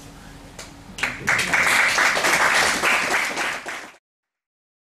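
A small audience applauds.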